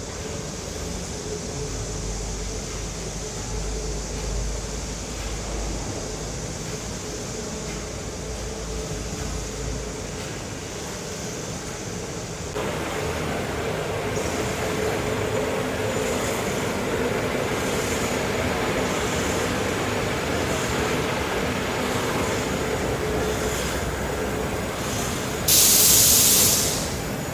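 Industrial machinery hums and whirs steadily in a large echoing hall.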